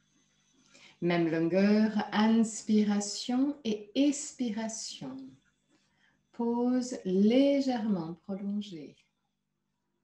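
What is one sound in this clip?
A woman speaks calmly and clearly into a close microphone, as on an online call.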